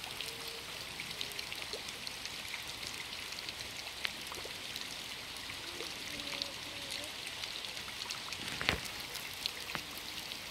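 Water trickles from a pipe into a pond.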